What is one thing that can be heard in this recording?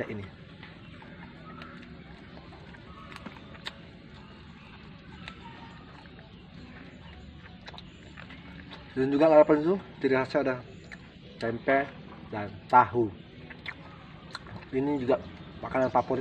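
A young man chews and smacks his lips close by.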